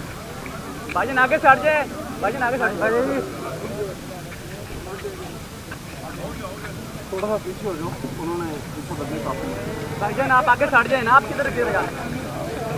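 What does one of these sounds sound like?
Several men shout loudly at close range.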